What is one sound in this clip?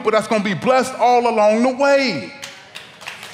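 A man speaks loudly and with animation through a microphone in a large echoing hall.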